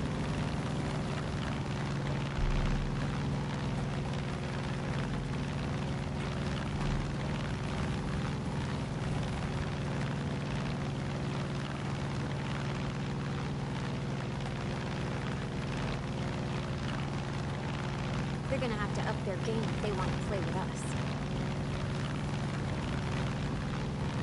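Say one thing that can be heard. A small propeller plane's engine drones steadily from inside the cockpit.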